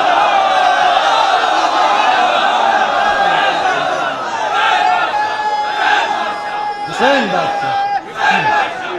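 A young man recites loudly through a microphone, his voice echoing through loudspeakers.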